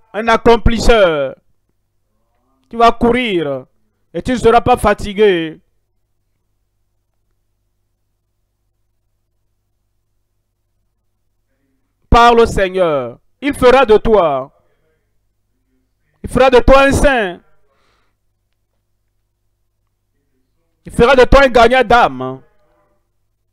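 A man prays loudly and fervently through a microphone.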